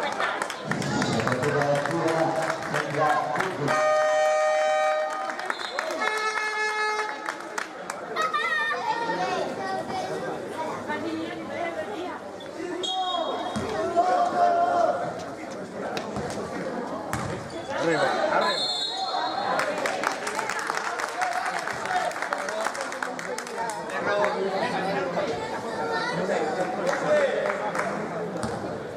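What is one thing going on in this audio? Spectators chatter and call out in a large echoing hall.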